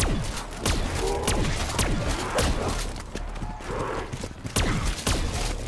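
Zombies snarl and growl.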